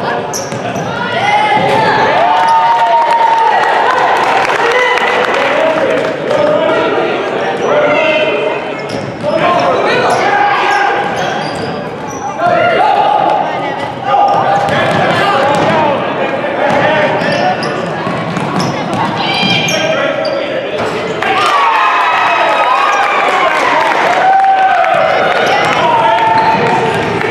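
Shoes squeak sharply on a hardwood floor in a large echoing hall.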